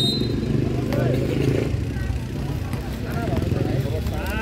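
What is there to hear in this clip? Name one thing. Young men shout calls to each other during a game.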